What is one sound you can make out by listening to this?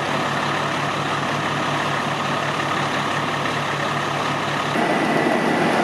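A fire engine's motor idles with a steady throbbing rumble.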